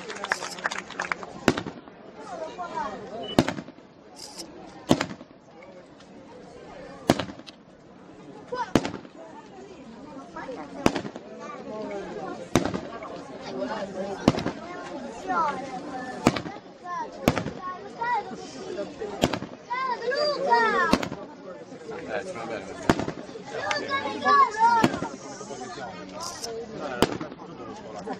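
Fireworks burst with loud sharp bangs again and again.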